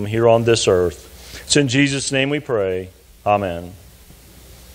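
A man speaks slowly through a microphone.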